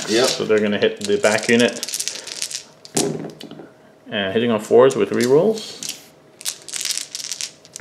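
Dice rattle in a cupped hand.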